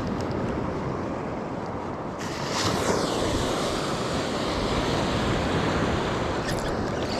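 Small waves wash and break nearby outdoors.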